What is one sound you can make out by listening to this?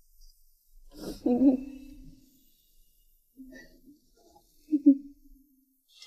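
A young woman sobs softly.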